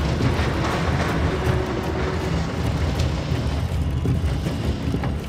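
A small cart rumbles along a track.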